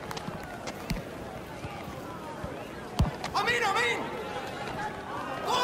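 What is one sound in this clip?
A crowd of spectators murmurs and cheers steadily.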